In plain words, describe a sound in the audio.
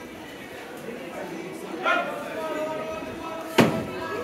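Men and women chatter at a distance in a large echoing hall.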